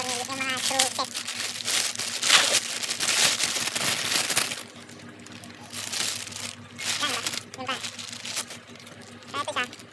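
Plastic bags crinkle and rustle in hands.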